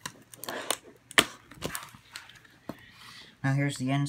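A plastic case clicks open.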